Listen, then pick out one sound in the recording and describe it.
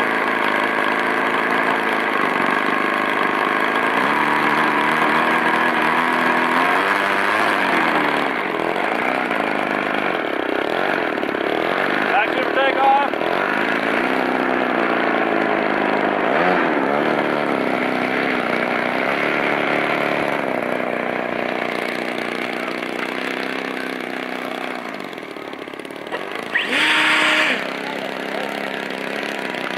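A model airplane engine roars loudly and steadily.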